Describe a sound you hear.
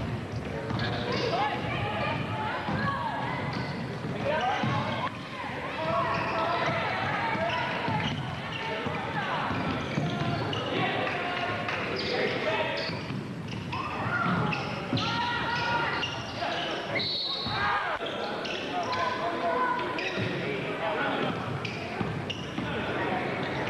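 Spectators talk nearby in an echoing gym.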